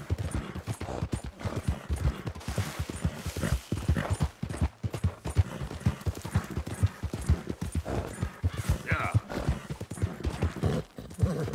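A horse gallops with quick, heavy hoofbeats on a rocky trail.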